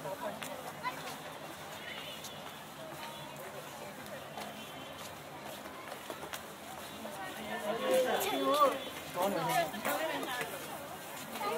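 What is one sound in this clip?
Footsteps tap on stone steps.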